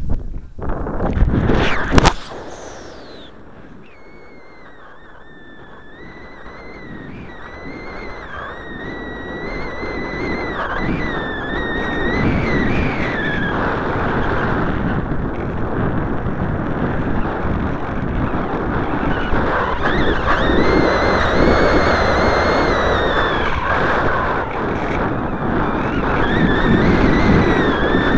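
Wind rushes loudly past the model plane.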